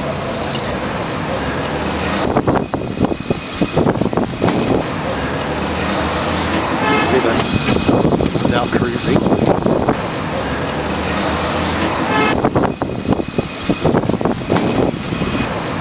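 A pedal-powered vehicle rattles along the road.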